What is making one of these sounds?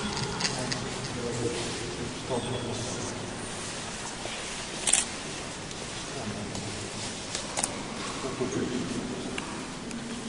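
An elderly man speaks quietly nearby.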